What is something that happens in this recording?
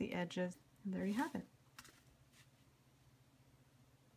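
A stiff card slides and taps onto a tabletop.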